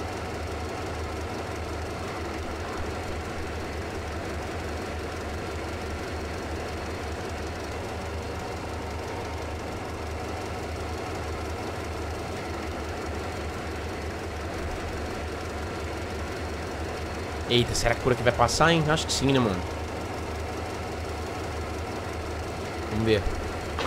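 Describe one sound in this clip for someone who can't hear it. A train engine hums low and steadily.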